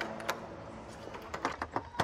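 A hand knocks on a car window.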